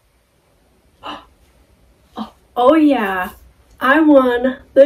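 A young woman speaks brightly and with animation, close by.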